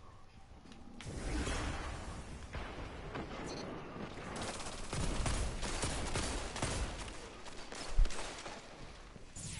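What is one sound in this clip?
Rapid gunfire crackles and echoes.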